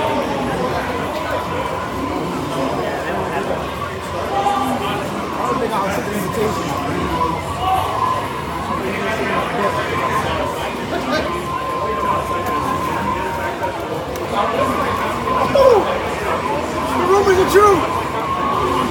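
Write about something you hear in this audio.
Fighting game hits and effects play from a loudspeaker.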